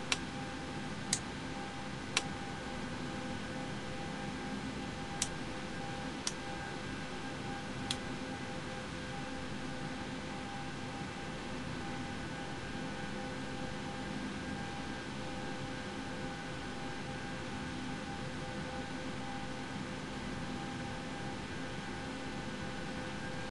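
Aircraft engines hum steadily.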